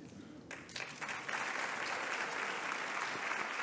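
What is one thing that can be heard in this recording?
A crowd claps and applauds in a large hall.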